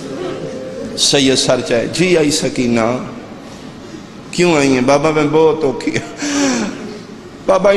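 A man speaks passionately into a microphone, heard through loudspeakers in a large echoing space.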